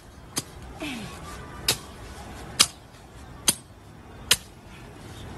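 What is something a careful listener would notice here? A machete slashes through tall grass in sharp strokes.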